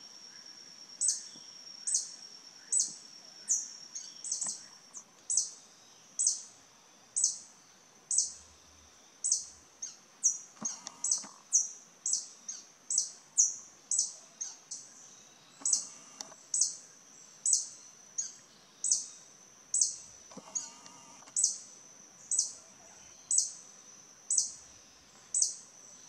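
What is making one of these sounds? A small bird gives sharp, high chirps over and over at a steady pace.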